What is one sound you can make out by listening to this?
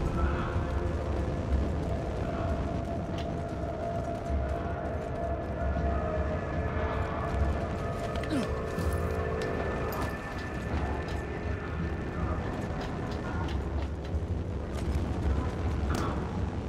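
Footsteps crunch over rubble and gravel.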